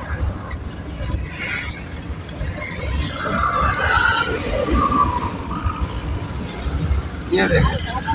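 A vehicle engine rumbles steadily up close while driving.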